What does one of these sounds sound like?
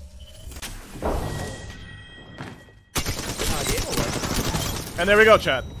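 Video game gunfire blasts.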